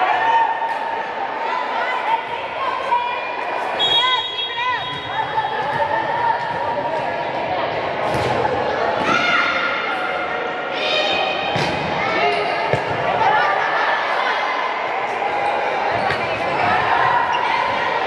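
A crowd of young voices chatters and calls out in a large echoing hall.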